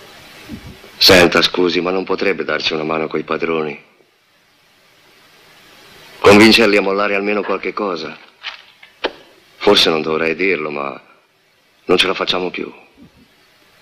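A middle-aged man speaks earnestly and close by.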